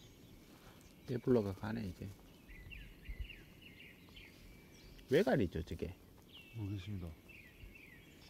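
A heron croaks harshly as it flies off.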